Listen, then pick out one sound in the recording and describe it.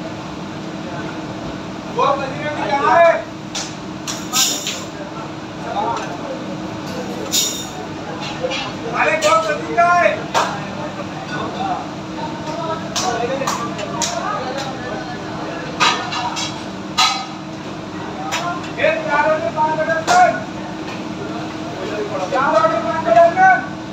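An extractor fan hums steadily.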